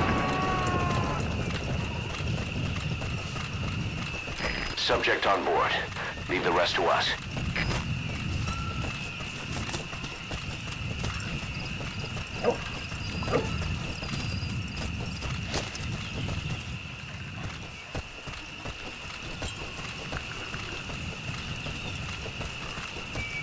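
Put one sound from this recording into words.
Footsteps run over dry dirt and grass.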